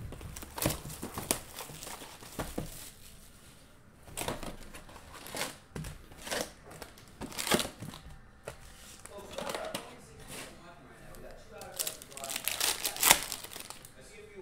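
Cardboard and foil wrappers crinkle and rustle as they are torn open.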